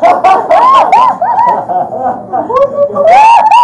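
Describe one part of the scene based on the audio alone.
A young woman shrieks with excitement nearby.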